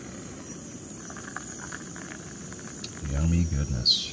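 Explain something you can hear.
Water pours and splashes into a wooden cup.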